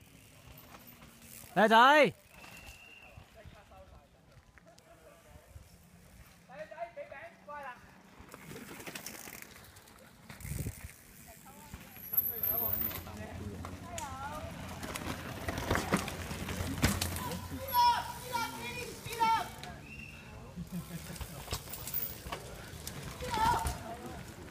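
Mountain bike tyres crunch over a rough dirt trail.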